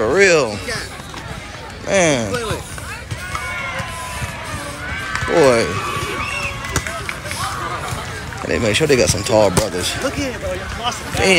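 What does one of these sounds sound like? Young men shout and cheer loudly close by.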